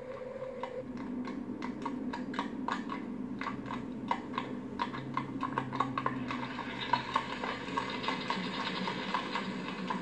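Horse hooves thud on stone steps.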